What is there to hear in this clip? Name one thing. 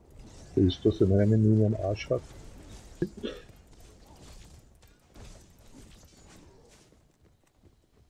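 Weapons and magic blasts clash in a fight.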